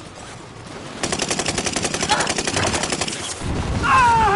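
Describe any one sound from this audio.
An automatic rifle fires a rapid burst of shots.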